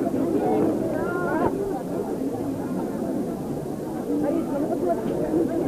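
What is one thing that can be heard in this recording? A crowd of children and adults chatters.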